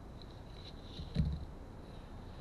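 A plastic key case snaps open.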